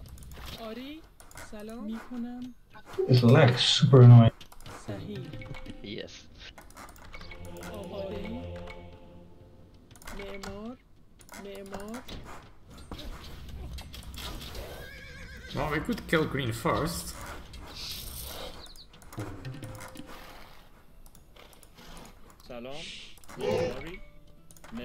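Game sound effects chime and click.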